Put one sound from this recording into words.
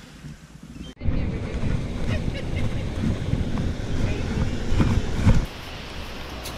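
Ocean waves break on a rocky shore.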